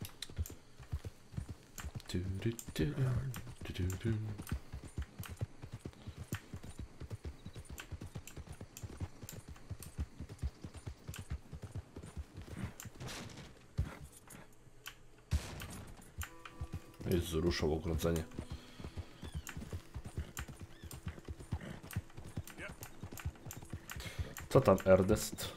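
Horse hooves clop steadily on a dirt track.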